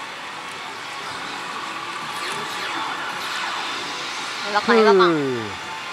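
Electronic jingles and sound effects play loudly from a slot machine.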